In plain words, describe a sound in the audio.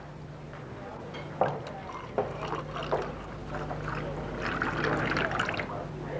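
Liquid pours from a jug into a glass.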